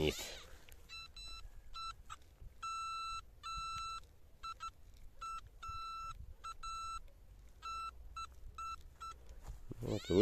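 A metal detector beeps in short, repeated high tones.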